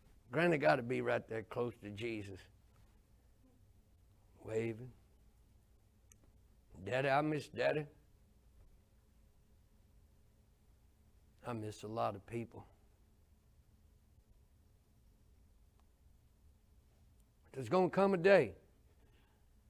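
An older man speaks in short bursts with long pauses, heard through a microphone.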